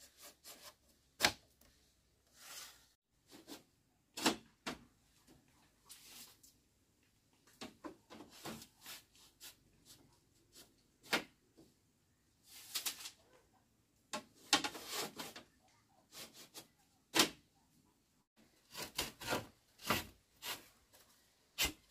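Bamboo strips rustle and scrape against each other.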